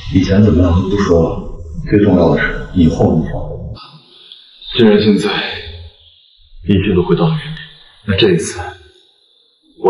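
A young man speaks calmly and seriously, close by.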